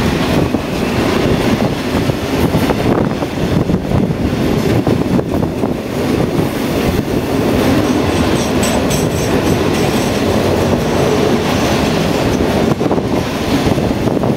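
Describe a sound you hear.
Wagon wheels clatter rhythmically over rail joints.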